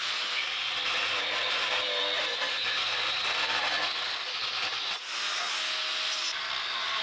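An angle grinder whines loudly as it cuts into metal.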